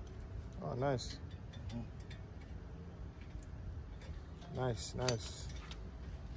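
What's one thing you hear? Metal brake parts click and clink as they are handled.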